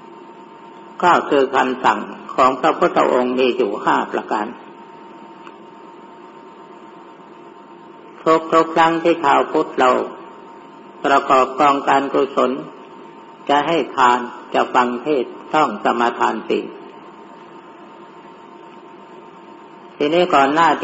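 An elderly man speaks calmly in short bursts with pauses, as if recorded through a microphone.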